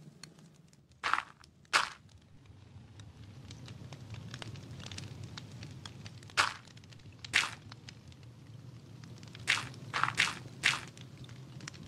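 Blocks of earth are placed with short, soft crunching thuds.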